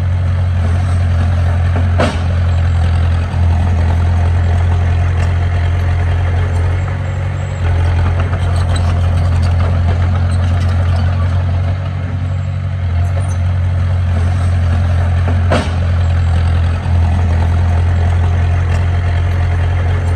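A bulldozer's metal tracks clank and squeak as it moves.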